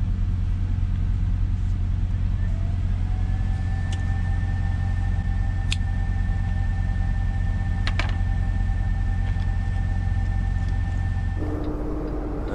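A truck engine idles with a low, steady hum.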